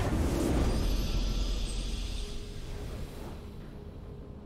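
A triumphant fanfare from a video game blares and fades.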